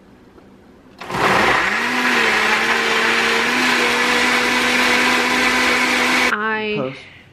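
A blender whirs loudly with a steady hum.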